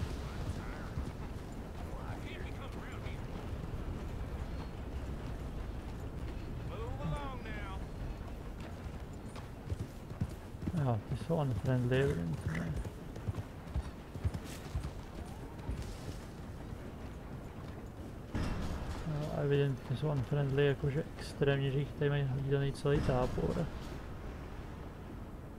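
A horse's hooves trot and thud on dirt and grass.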